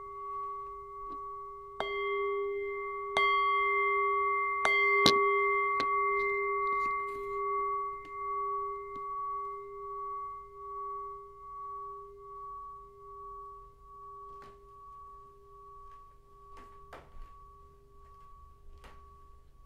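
A bell is struck several times and rings with long, slowly fading tones.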